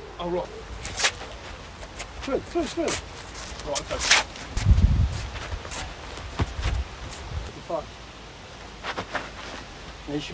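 A man speaks briefly nearby, outdoors.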